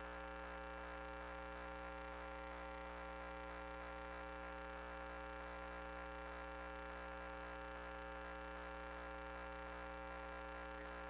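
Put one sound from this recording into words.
A small motor whirs steadily as a crawler rolls through a pipe.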